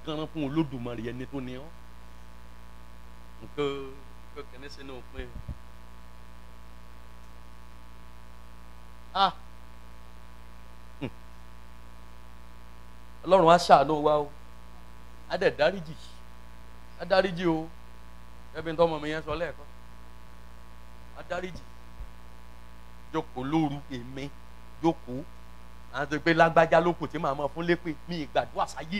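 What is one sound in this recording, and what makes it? A man preaches in bursts with animation through a loudspeaker.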